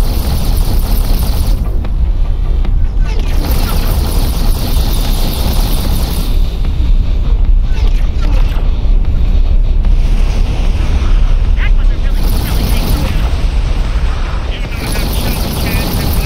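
A spaceship engine rumbles steadily and deeply.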